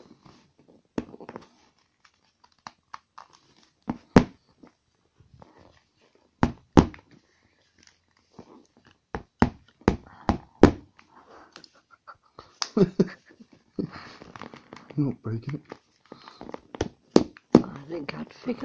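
A hard plastic object clicks and knocks against a padded surface.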